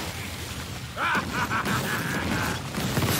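A fiery explosion bursts with a loud roar.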